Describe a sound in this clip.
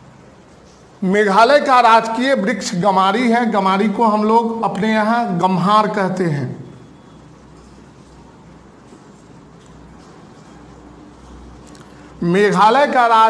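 A middle-aged man speaks steadily, as if teaching, close by.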